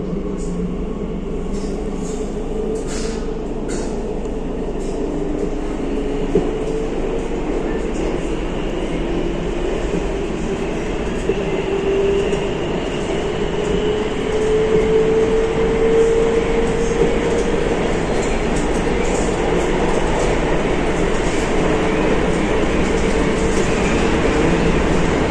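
A subway train rumbles and hums steadily as it moves through a tunnel.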